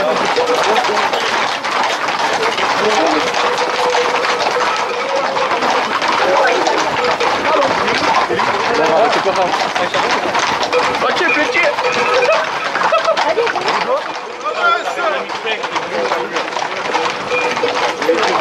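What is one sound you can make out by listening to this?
Horses' hooves clop on a paved road.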